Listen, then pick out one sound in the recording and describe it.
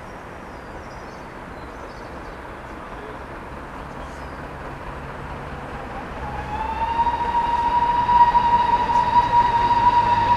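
A steam locomotive chuffs as it approaches.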